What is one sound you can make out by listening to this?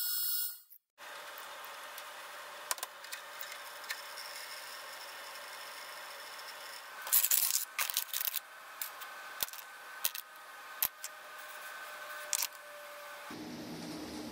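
An ultrasonic cleaner hums steadily.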